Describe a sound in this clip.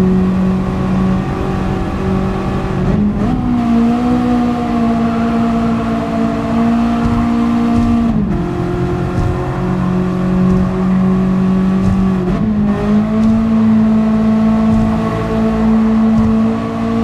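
A racing car engine drones at high revs, its pitch jumping with each gear change.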